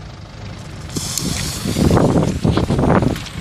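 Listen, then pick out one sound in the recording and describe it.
A fuse hisses and sparks.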